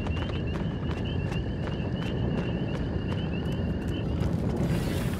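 Fire crackles and pops.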